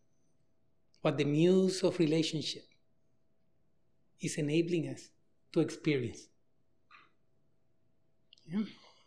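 A man lectures with animation through a microphone in a large echoing hall, pausing between phrases.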